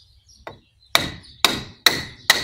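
A hammer strikes metal several times, sharp and ringing.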